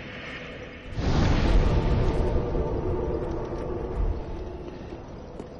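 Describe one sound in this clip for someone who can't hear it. A deep rushing whoosh swells and slowly fades.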